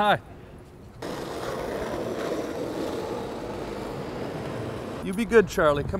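Skateboard wheels roll and rumble over pavement.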